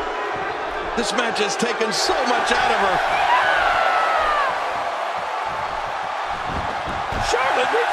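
Bodies slam hard onto a wrestling mat.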